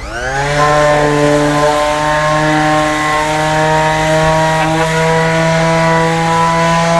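An electric sander whirs up to speed and hums steadily while sanding wood.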